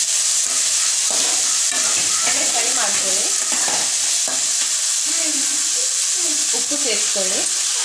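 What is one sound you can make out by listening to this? Chopped onions sizzle as they fry in oil.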